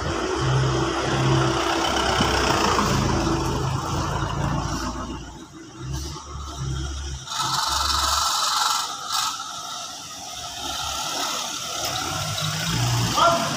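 An ambulance engine hums as it rolls slowly past close by.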